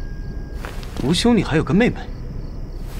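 A young man asks a question softly, close by.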